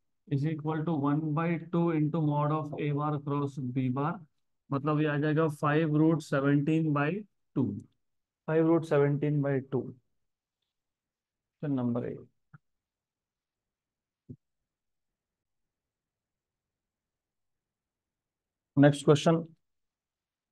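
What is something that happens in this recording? A man explains calmly through a close microphone, pausing often.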